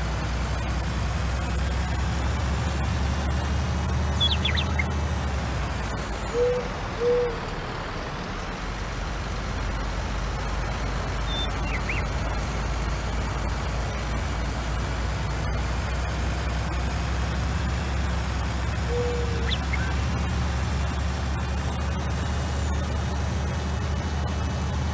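A heavy truck engine drones steadily, easing off briefly as the truck slows.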